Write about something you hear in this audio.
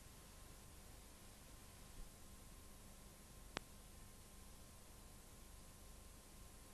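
Static hisses steadily and softly.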